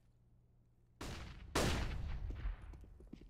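Bullets smack into a stone wall.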